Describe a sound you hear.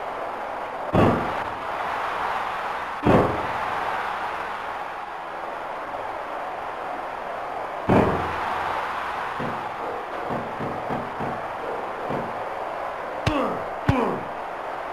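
Heavy thuds of wrestlers slamming onto the ring mat ring out.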